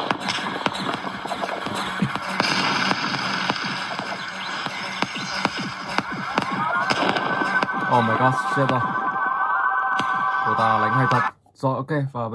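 Video game music and effects play loudly from a tablet's speaker.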